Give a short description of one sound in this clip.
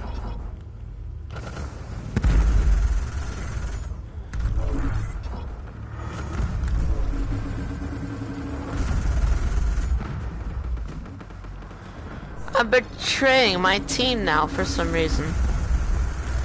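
A spacecraft engine rumbles low.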